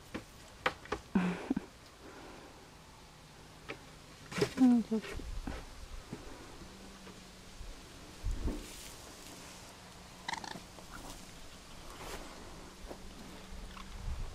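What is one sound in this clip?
Dry straw rustles as a small animal moves.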